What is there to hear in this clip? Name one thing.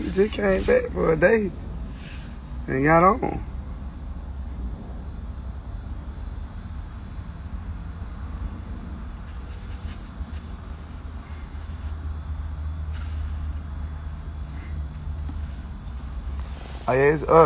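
A man speaks in short bursts, close to a phone's microphone.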